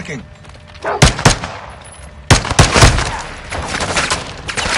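Pistol shots ring out sharply.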